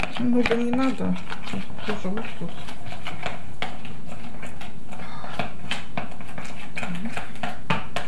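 A spoon clinks and scrapes against a ceramic bowl while stirring.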